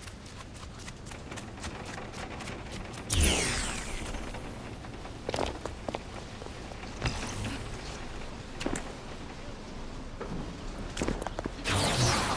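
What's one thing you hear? Footsteps run quickly over wet ground.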